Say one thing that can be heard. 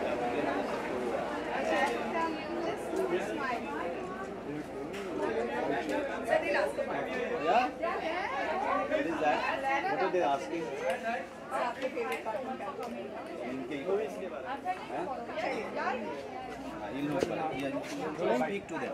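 Several adults chatter and talk over one another nearby.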